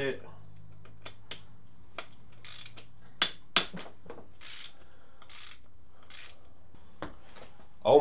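Metal tools click and clink against an engine.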